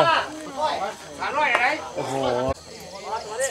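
Men talk close by.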